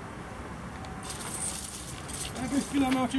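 Metal chains rattle as a man handles them.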